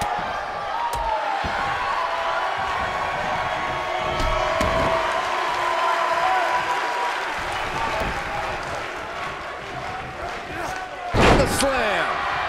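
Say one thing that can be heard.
A large crowd cheers and murmurs steadily in a big arena.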